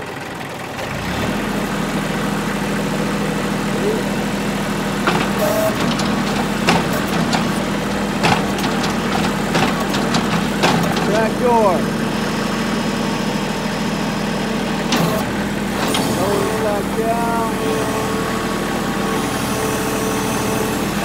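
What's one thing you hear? A tractor engine runs steadily at idle.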